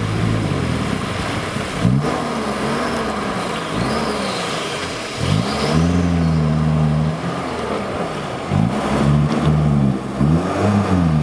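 An off-road vehicle engine revs hard, rising and falling.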